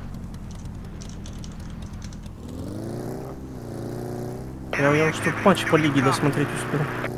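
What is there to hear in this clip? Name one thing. A small off-road buggy engine hums and revs up as it drives.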